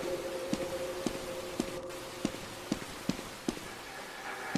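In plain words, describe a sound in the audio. Footsteps thump steadily.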